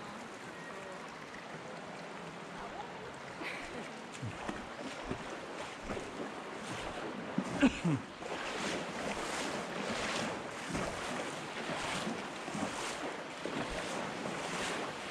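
Water flows and splashes gently in a narrow rocky gorge.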